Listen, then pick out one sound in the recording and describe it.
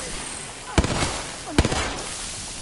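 A rifle fires a few sharp, loud shots.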